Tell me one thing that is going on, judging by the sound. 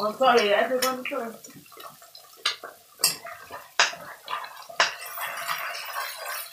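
Eggs sizzle in a hot pan.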